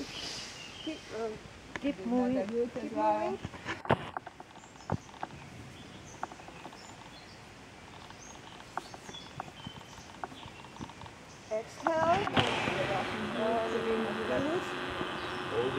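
A woman speaks calmly nearby, outdoors.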